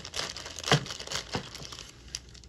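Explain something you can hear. Scissors snip through plastic.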